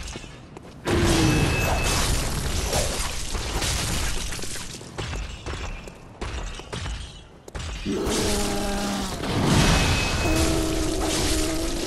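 A huge creature roars and groans loudly.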